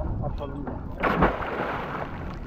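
An anchor splashes into the water.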